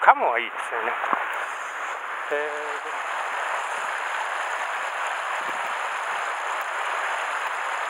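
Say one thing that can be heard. A shallow river flows and burbles steadily nearby.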